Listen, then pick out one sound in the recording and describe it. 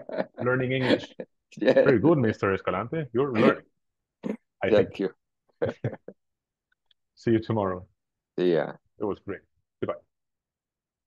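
A man speaks calmly over an online call, explaining with pauses.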